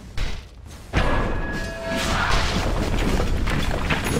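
Magical spell effects whoosh and crackle in a fight.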